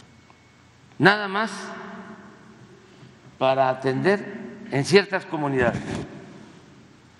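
An elderly man speaks slowly into a microphone in a large echoing hall.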